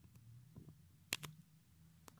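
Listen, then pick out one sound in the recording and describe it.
A fingertip taps lightly on glass.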